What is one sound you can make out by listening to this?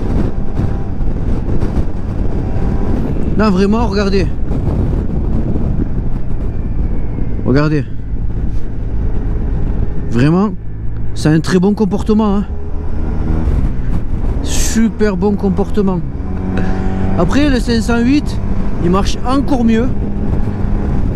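A scooter engine drones and revs up and down while riding.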